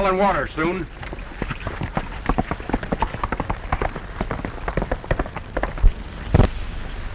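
Horses' hooves clop on a dirt path.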